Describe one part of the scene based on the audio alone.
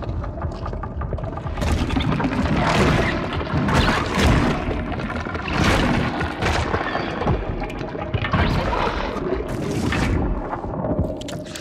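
Wet flesh squelches.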